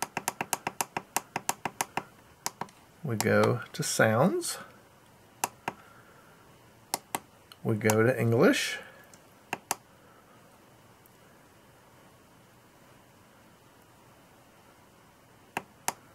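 An RC radio transmitter beeps as its buttons are pressed.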